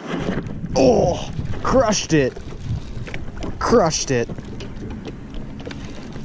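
A fishing reel whirs as its handle is cranked.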